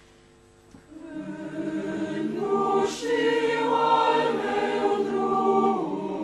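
A choir sings together.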